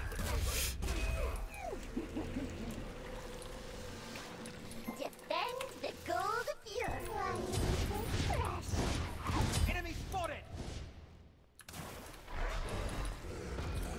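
Video game spell effects whoosh and crackle.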